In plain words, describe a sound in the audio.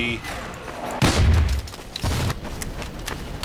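Rockets explode with heavy booms.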